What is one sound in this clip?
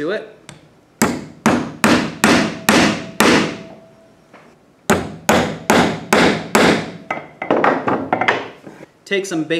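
A hammer strikes nails into wood in quick, ringing blows.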